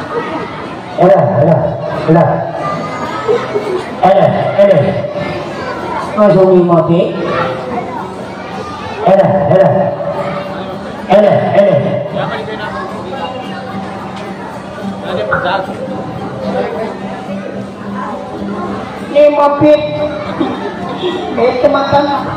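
A young man sings loudly into a microphone.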